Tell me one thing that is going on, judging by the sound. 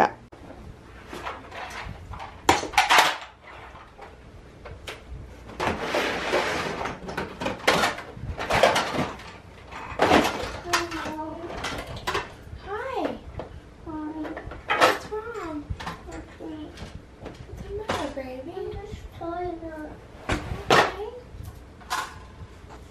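Plastic toys clatter as they are tossed into a bin.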